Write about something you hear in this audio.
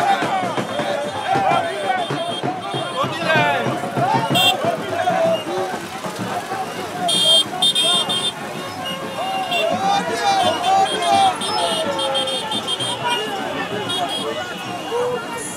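A large crowd of men and women shouts and chants outdoors.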